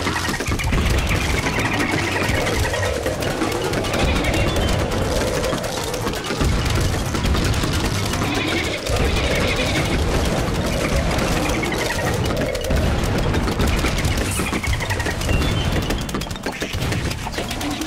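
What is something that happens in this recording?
Rapid cartoon popping sounds fire nonstop.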